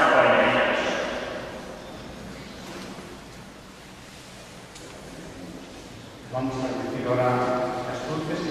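A congregation of men and women sings together in a large echoing hall.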